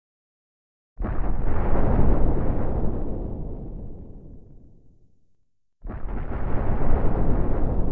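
Heavy explosions boom and rumble, then die away.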